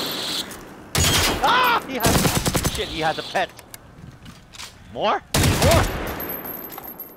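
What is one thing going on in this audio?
Rifle shots fire in loud bursts.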